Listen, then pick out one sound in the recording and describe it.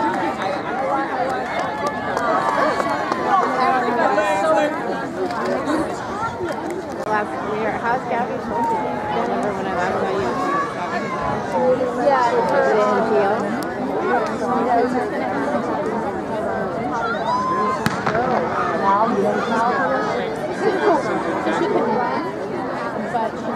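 A crowd of young people chatters and calls out nearby outdoors.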